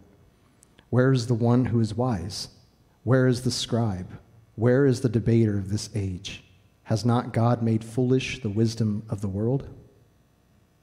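A young man speaks into a microphone in a calm, measured voice.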